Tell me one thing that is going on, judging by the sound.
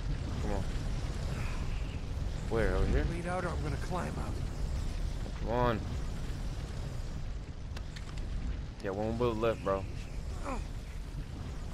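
Wind howls and roars steadily in a snowstorm.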